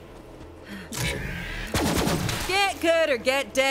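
A laser gun fires a burst of sharp zapping shots.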